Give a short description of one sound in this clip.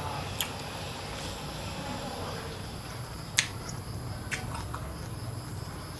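A young man chews and smacks his lips while eating.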